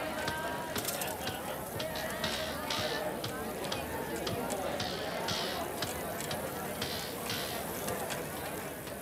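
A crowd murmurs and chatters in a busy street.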